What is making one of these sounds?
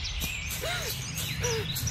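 A man runs across dry leaves, his footsteps crunching.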